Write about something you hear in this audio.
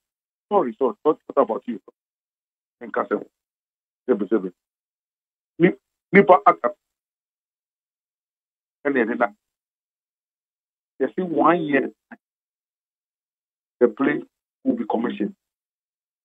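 A young man talks animatedly into a microphone, in short bursts with pauses.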